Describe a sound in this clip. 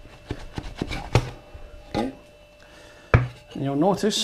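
A plastic container knocks against a hard surface.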